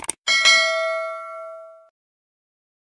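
A bell chimes brightly and fades.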